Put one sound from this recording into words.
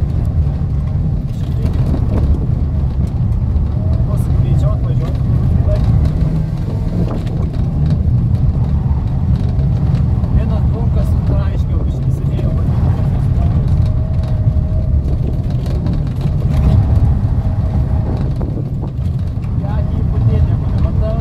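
A car engine rumbles and revs steadily up close.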